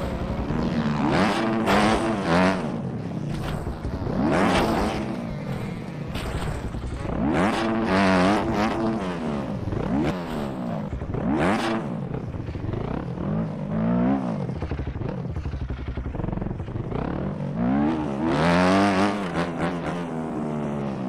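A motorcycle engine revs up and down constantly, whining higher and lower as it accelerates and shifts.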